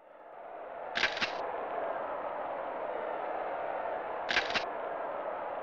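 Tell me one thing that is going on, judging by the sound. Electronic menu beeps chime twice.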